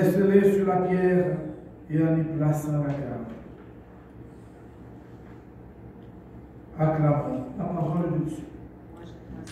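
A man reads aloud slowly into a microphone in an echoing room.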